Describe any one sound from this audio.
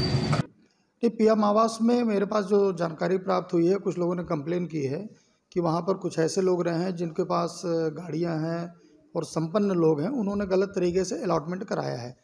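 A middle-aged man speaks calmly and steadily into nearby microphones.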